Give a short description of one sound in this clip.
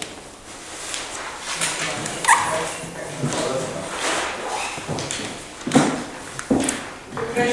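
Paper rustles as sheets are handed across a table.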